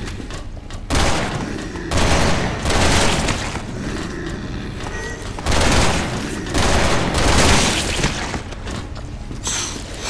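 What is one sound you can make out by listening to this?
A rifle fires in loud bursts.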